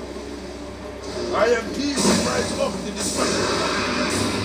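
A deep male voice speaks from a game, heard through speakers.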